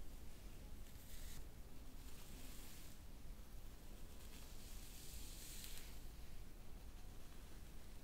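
Artificial flowers rustle softly close to the ears.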